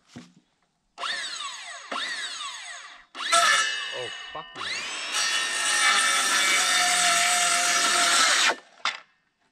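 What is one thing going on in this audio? A circular saw whines loudly as it cuts through wood, then spins down.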